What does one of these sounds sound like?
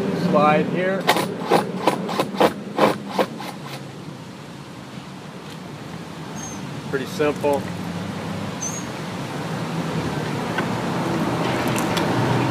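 A screw gun whirs in short bursts.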